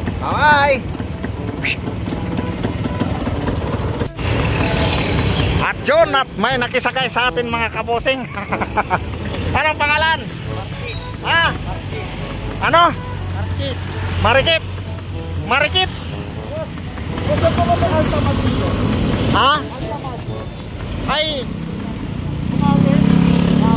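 A motor tricycle engine rumbles steadily.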